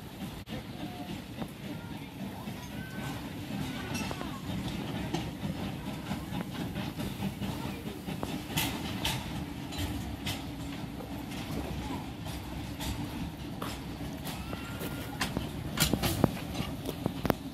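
A small steam locomotive chuffs slowly as it approaches.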